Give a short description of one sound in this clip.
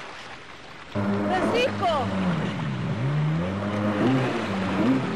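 A motorboat engine roars and changes pitch as the boat speeds past.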